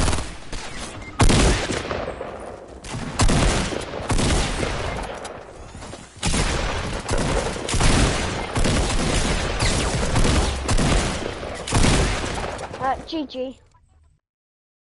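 Video game gunfire bangs loudly in rapid bursts.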